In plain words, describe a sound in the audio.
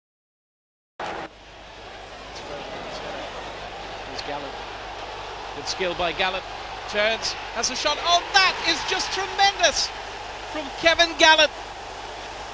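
A large stadium crowd roars, swelling louder.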